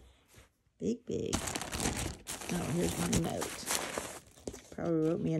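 A plastic package crinkles and rustles close by.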